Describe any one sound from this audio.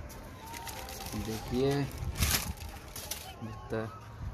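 Paper rustles and crinkles as it is pulled from a box.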